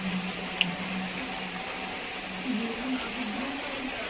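Rainwater splashes onto a flooded path.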